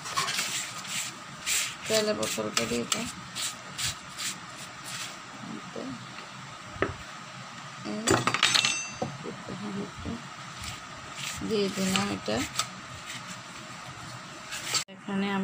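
Hands pat and rustle powder in a metal pan.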